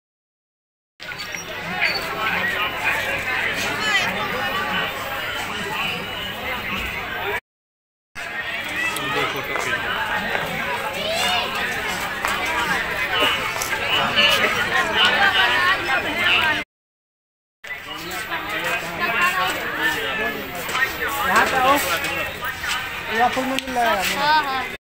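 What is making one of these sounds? A crowd chatters and murmurs all around outdoors.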